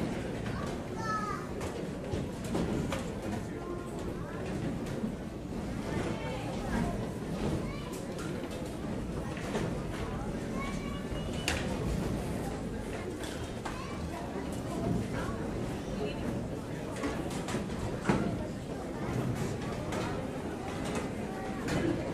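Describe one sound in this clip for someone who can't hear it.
Chairs and music stands clatter and knock on a stage.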